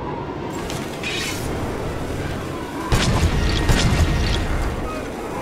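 Sparkling magical chimes twinkle and shimmer.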